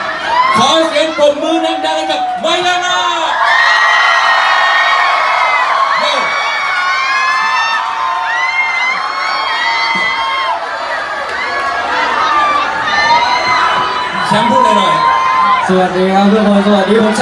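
A young man sings loudly into a microphone over a live band.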